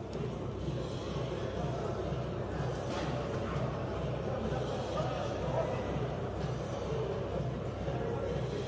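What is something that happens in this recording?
A small crowd murmurs quietly in an echoing hall.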